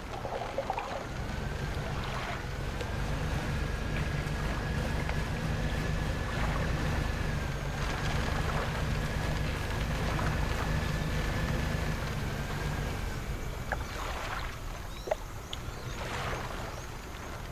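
A small boat's engine chugs steadily at a low pitch.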